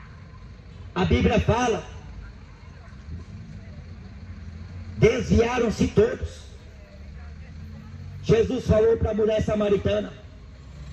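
A young man speaks through a microphone and loudspeaker outdoors, in short phrases with pauses.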